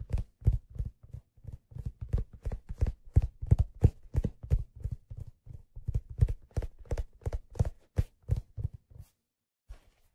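Fingers tap quickly on a hard leather case close up.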